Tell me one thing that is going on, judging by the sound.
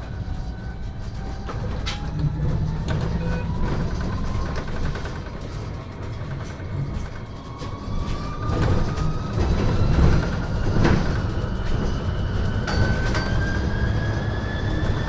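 A bus engine hums and whines as the bus drives along a street.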